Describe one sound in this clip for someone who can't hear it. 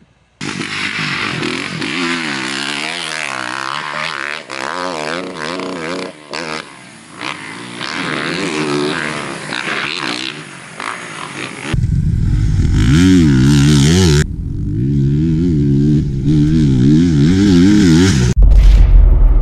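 A dirt bike engine revs and roars as the bike races over a dirt track.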